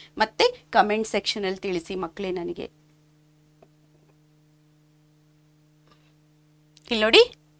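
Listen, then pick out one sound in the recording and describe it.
A woman speaks clearly and with animation into a close microphone.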